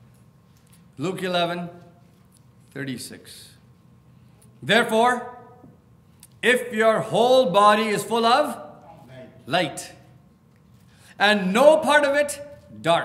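A middle-aged man speaks calmly and deliberately through a microphone.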